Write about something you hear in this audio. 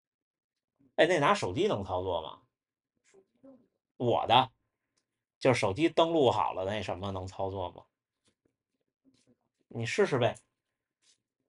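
A young man speaks casually, close by, in short bursts.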